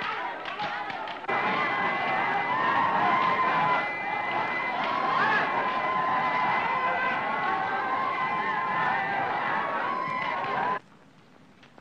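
A crowd of men sings and chants loudly together.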